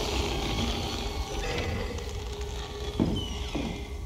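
A wooden door creaks and bumps shut.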